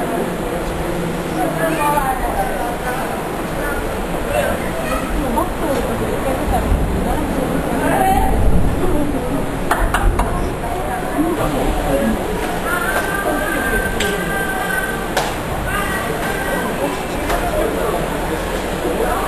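Churning water rushes and swirls far below.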